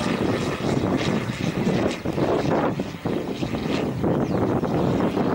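A propeller plane drones steadily overhead.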